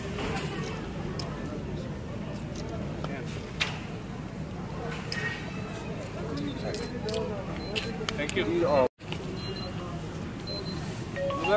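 A crowd of men talks quietly nearby outdoors.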